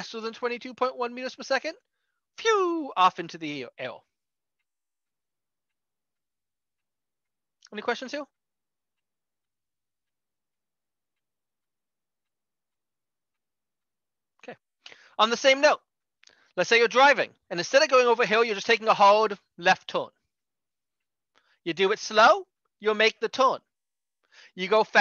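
A man speaks calmly into a close microphone, explaining in bursts with pauses.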